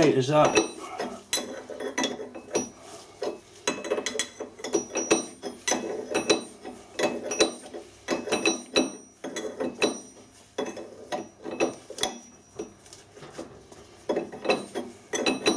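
A metal wrench clicks and clanks against gears as a nut is loosened.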